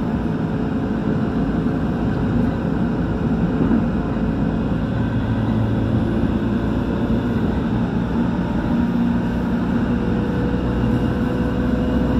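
An electric commuter train runs at speed on the rails, heard from inside the carriage.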